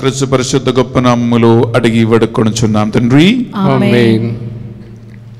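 A man speaks slowly into a microphone, with echo.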